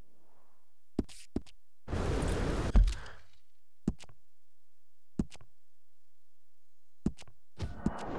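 Short game menu clicks tick now and then.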